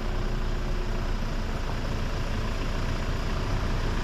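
A van drives slowly along the lane.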